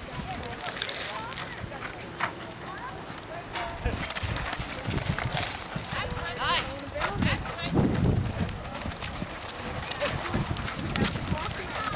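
Horse hooves pound on loose dirt at a gallop.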